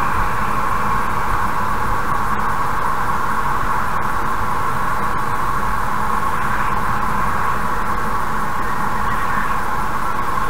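A car drives steadily along a highway with a constant rush of road noise.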